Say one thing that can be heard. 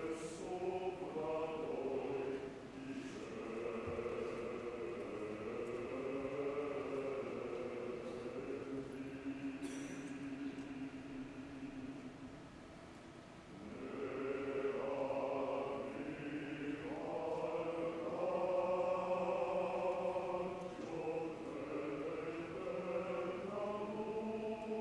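A woman sings opera, her voice ringing in a large hall.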